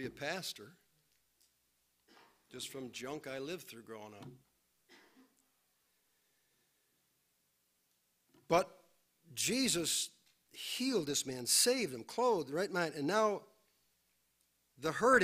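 A middle-aged man preaches with feeling into a microphone, pausing between phrases.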